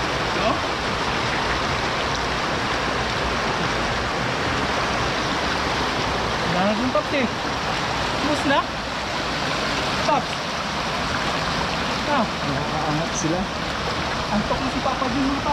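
Water rushes through a sluice gate.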